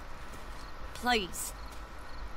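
A young woman speaks softly, pleading.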